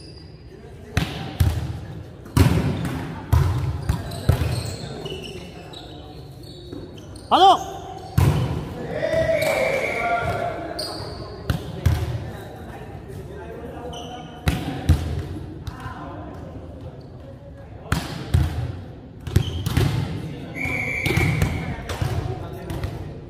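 A volleyball is struck with loud smacks that echo around a large hall.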